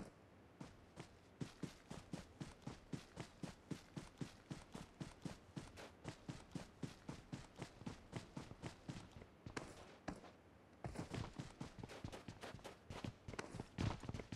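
Quick footsteps run over grass and hard ground.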